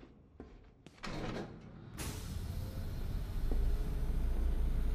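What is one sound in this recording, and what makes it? A heavy metal vault door grinds and rumbles as it turns open.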